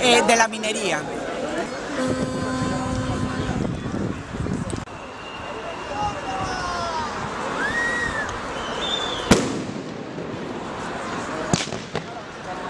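A large crowd murmurs and chants outdoors.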